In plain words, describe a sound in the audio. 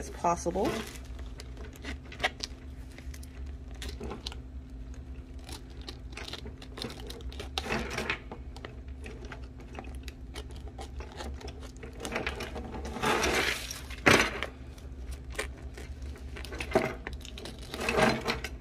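Scissors snip through a plastic mailer.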